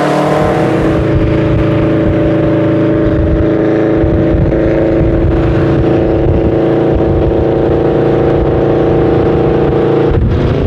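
A car cruises with a steady, deep engine rumble.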